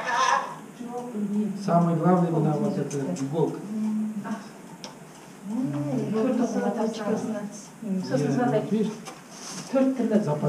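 An elderly man speaks calmly close by.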